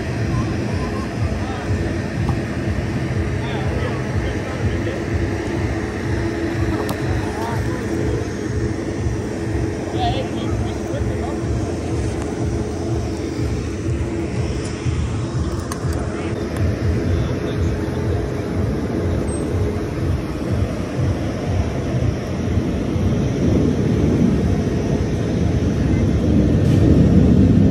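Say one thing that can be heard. Water churns and bubbles loudly in a pool.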